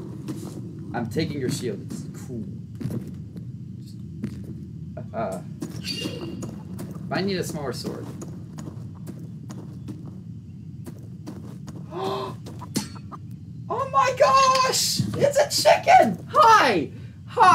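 A young man speaks with animation into a microphone, off and on.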